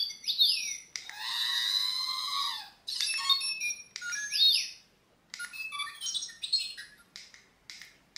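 A toy robot beeps and whistles in quick electronic chirps.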